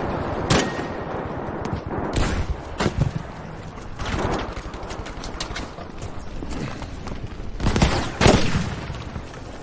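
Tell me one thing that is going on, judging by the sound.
Explosions boom one after another.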